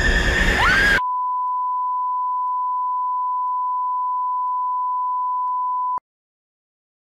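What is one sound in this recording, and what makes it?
A steady high test tone sounds and then cuts off abruptly.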